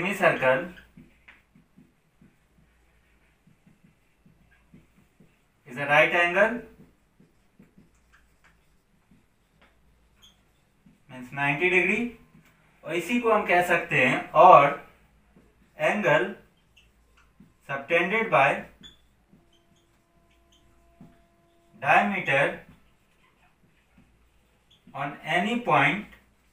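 A young man speaks calmly and clearly, explaining in short phrases with pauses between them.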